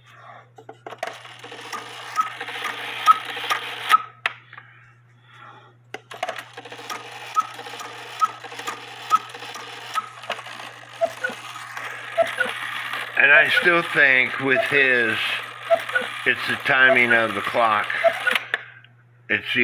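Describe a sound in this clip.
A clock mechanism whirs with quick, even ticking.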